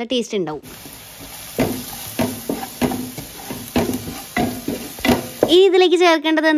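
A wooden spatula scrapes and stirs food in a metal pot.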